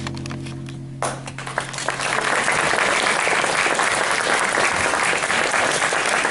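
An audience applauds loudly.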